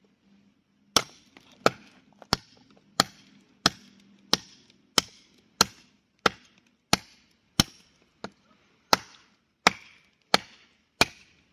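A blade chops into wood with quick, sharp blows outdoors.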